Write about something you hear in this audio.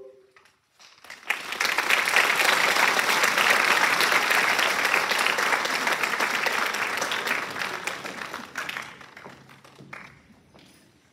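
An audience claps loudly and then the applause fades.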